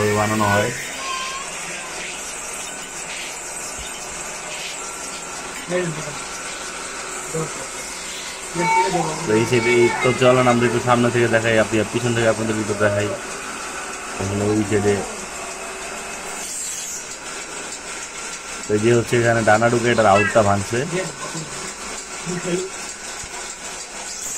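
A lathe motor whirs steadily.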